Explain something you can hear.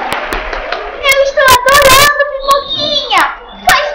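A young woman speaks playfully in a high, animated voice.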